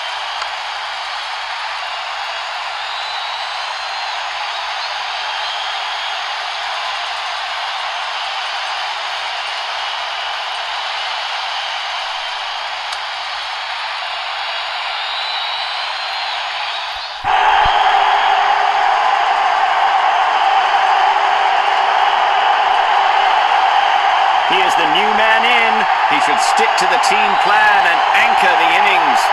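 A large stadium crowd roars steadily, growing louder partway through.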